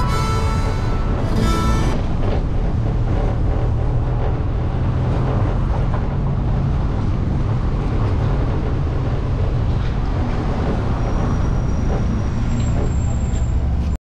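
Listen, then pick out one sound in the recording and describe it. A car engine hums steadily as the car drives along a street.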